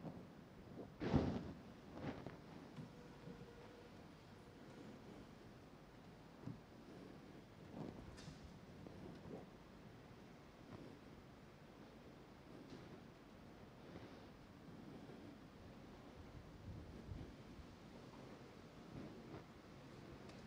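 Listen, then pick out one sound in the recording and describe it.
Soft knocks and clinks sound now and then in a quiet, echoing room.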